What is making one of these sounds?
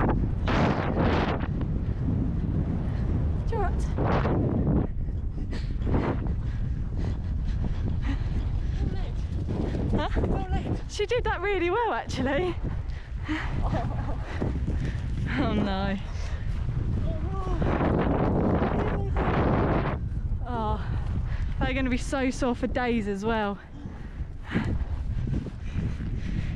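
A horse's hooves thud steadily on grass.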